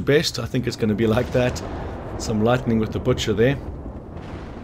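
A man speaks calmly in a gruff voice close by.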